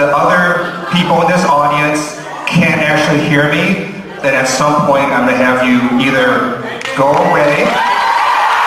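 A man speaks with animation into a microphone over loudspeakers in a large hall.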